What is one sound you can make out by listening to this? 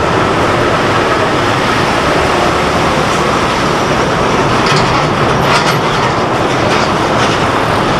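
A ladle scrapes and clinks against a metal pot.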